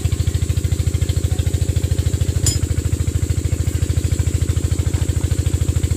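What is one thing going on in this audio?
Metal parts clink against each other.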